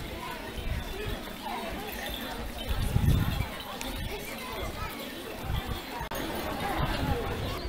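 Footsteps of a large crowd shuffle past on pavement.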